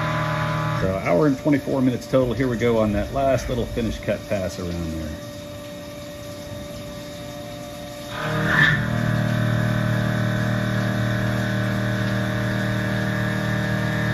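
A milling machine cutter grinds into metal.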